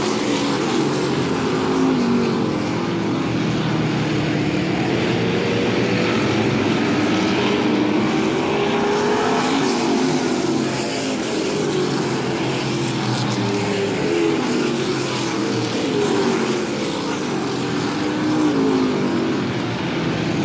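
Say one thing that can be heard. Engines rise and fall in pitch as the cars pass and shift.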